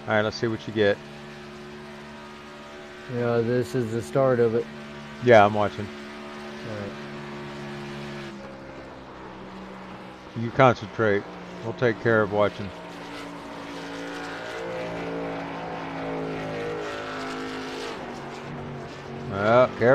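A race car engine hums steadily.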